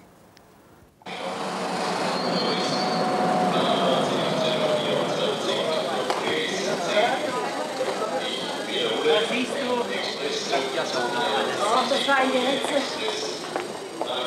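A crowd bustles and chatters in a large echoing hall.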